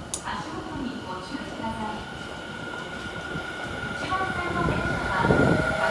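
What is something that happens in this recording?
An electric commuter train pulls away in an underground station, its motors whining as it speeds up.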